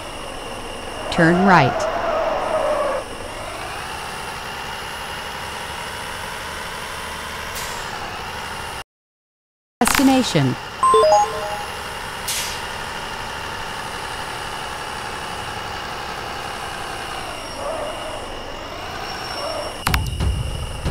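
A truck engine drones steadily and changes pitch as it speeds up and slows down.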